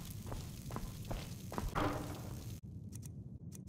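A wooden chest lid opens.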